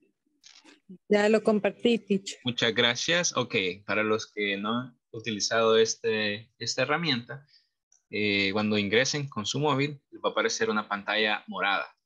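A man speaks over an online call.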